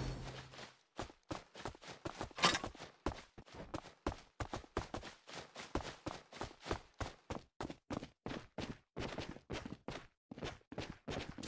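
Quick running footsteps patter in an even rhythm.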